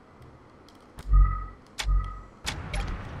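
A menu chimes as a notice pops up.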